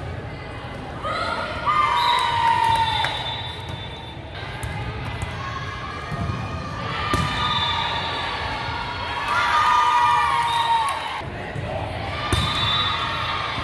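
Young women shout and call out in a large echoing hall.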